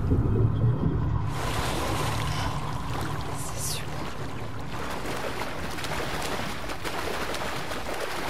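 Water splashes and sloshes as a swimmer strokes through it.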